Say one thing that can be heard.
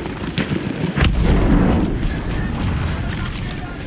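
A heavy explosion booms nearby and rumbles away.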